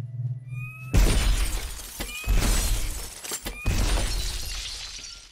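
Glass shatters with loud bursts.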